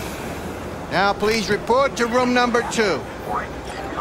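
A man speaks firmly through a speaker nearby.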